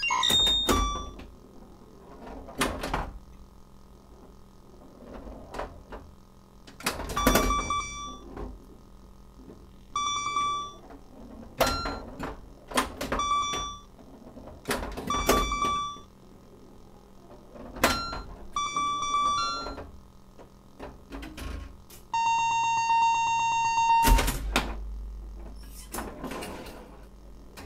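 A pinball machine's ball clacks and knocks against bumpers and flippers.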